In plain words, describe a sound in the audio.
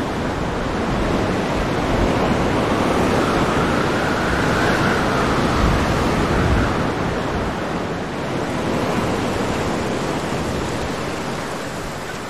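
Strong wind roars and gusts steadily.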